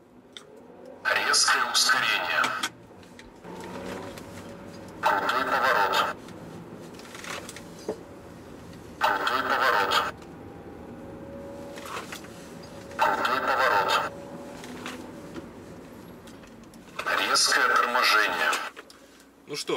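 A car engine revs loudly in short bursts.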